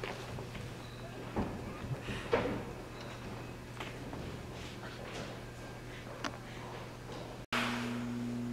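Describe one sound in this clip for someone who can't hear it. Fluorescent lights hum steadily.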